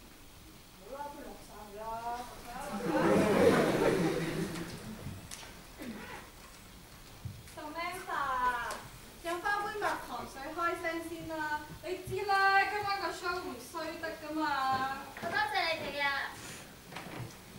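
Young women talk on a stage, heard from a distance in a large hall.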